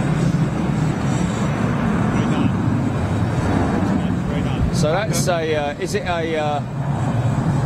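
A large jet engine rumbles steadily as an airliner taxis nearby.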